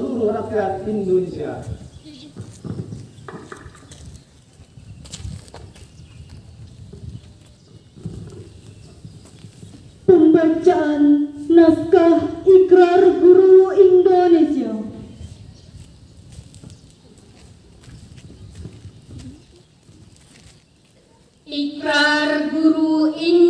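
A man calls out loud, drawn-out commands through a microphone and loudspeaker outdoors.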